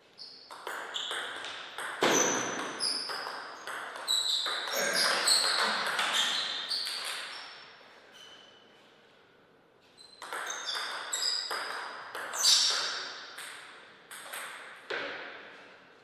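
A ball clicks back and forth off paddles and a table in quick rallies.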